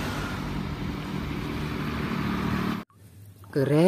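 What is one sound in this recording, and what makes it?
A diesel truck drives along a road.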